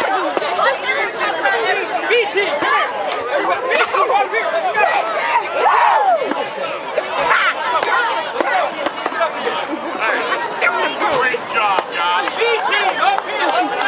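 A crowd of boys talks and shouts at once nearby, outdoors.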